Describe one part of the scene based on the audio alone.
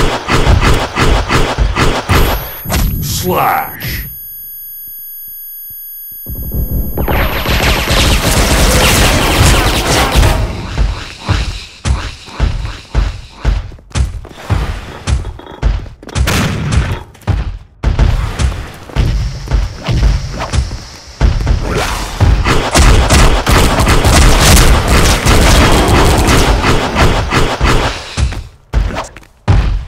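Heavy footsteps thud quickly on hard ground.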